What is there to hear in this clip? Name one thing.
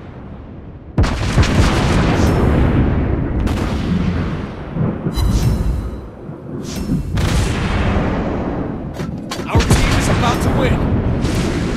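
Heavy naval guns boom and rumble in rapid bursts.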